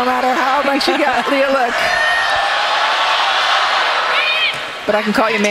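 A large crowd cheers in an echoing hall.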